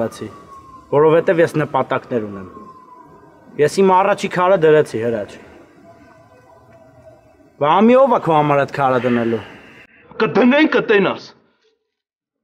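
A second young man speaks firmly in reply.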